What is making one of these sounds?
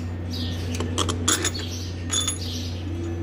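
A metal wrench clinks against engine parts.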